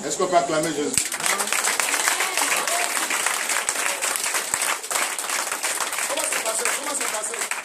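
A crowd claps rapidly in a room.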